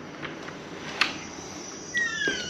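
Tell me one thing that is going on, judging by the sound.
A door latch clicks as a door opens.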